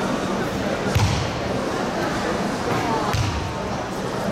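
Feet thump on a wooden floor.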